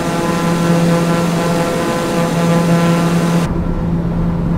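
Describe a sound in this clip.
A propeller engine drones steadily from outside the aircraft.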